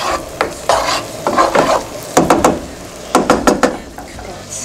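A wooden spoon scrapes and knocks against a pan.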